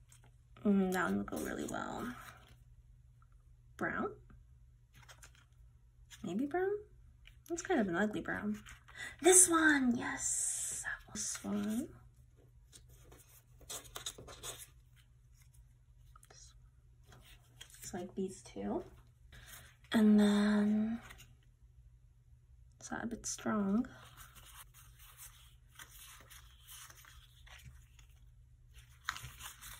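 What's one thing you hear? Paper sheets rustle and slide against each other as hands shuffle them.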